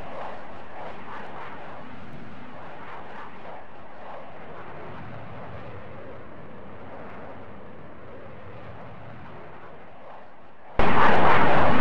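A jet engine roars steadily and slowly fades into the distance.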